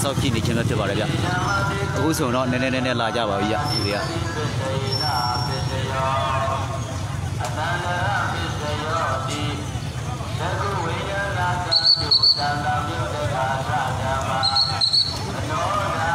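A crowd of men and women shout and talk loudly outdoors.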